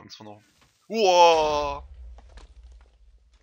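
An explosion booms loudly close by.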